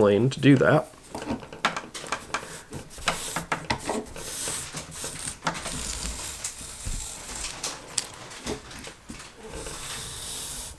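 A sanding block rubs back and forth along a piece of wood.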